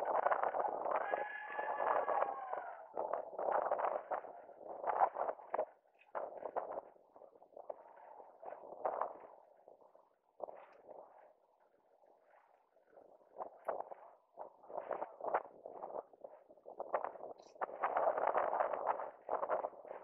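Inline skate wheels roll and scrape on asphalt in quick strides.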